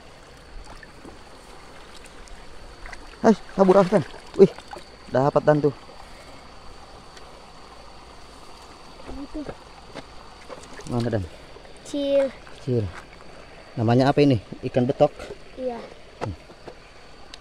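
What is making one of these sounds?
Hands splash and slosh in shallow muddy water.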